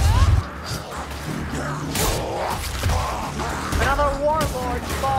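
Weapons slash and clash in a fierce fight.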